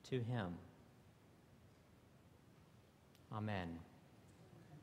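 A man speaks calmly into a microphone in a large echoing hall, in two short phrases.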